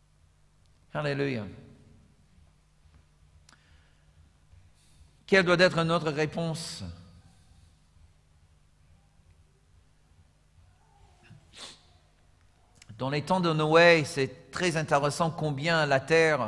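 A middle-aged man speaks with animation through a microphone, in bursts with long pauses.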